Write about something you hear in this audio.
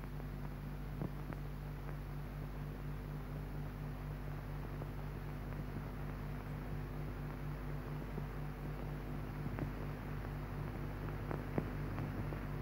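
Dishes clink softly now and then.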